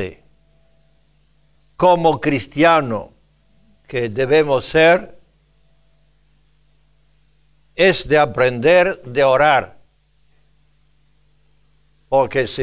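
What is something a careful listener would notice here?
An elderly man speaks emphatically into a microphone, in short bursts with pauses.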